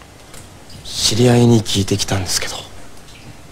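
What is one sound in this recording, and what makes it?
A young man speaks quietly and calmly, close by.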